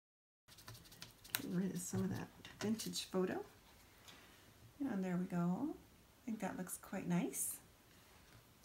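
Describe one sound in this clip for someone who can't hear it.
A woman speaks calmly, close to the microphone.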